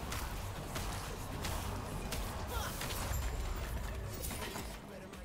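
Game combat effects burst and crash in quick succession.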